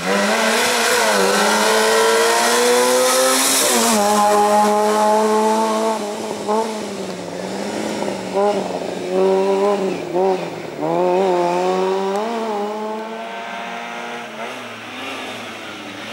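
A car engine revs hard and roars close by.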